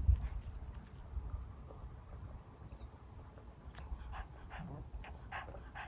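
A woman sips a drink.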